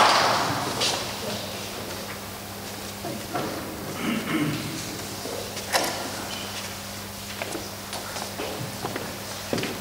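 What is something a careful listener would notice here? Papers rustle and shuffle on a table.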